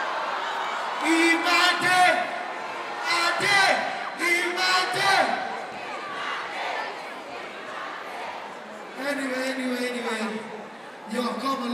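A man sings loudly into a microphone over a loudspeaker system.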